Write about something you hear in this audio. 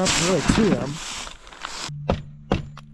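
Fabric rustles as it is pulled taut.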